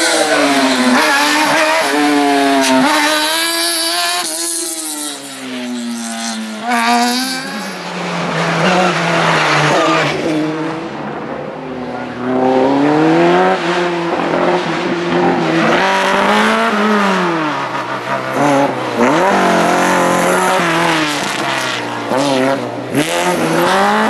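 Racing cars speed past close by and fade into the distance.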